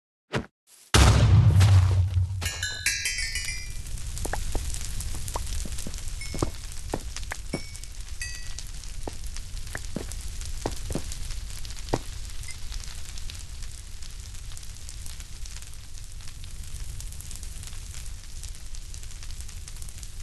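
Fire crackles and roars steadily.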